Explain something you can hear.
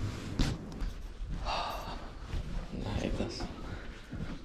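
A young man talks close by, in a low voice.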